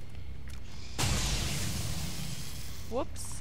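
An energy weapon fires with a loud crackling blast.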